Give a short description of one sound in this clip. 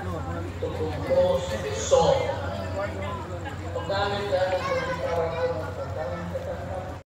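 A large crowd outdoors sings and chatters loudly all around.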